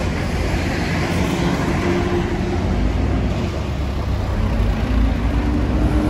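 A truck engine rumbles close by.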